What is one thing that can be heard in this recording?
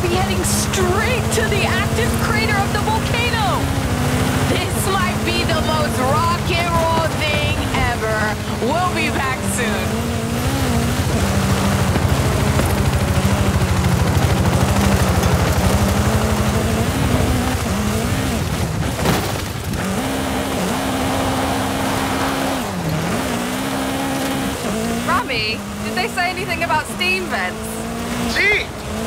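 A rally car engine roars and revs up and down.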